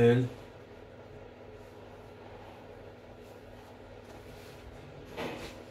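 Fabric rustles softly as clothes are smoothed and folded.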